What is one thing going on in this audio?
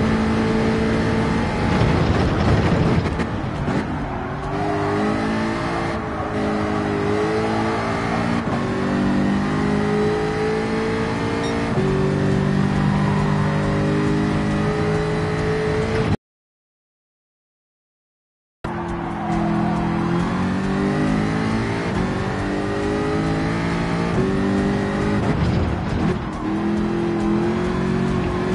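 A race car engine roars and revs up and down through the gears.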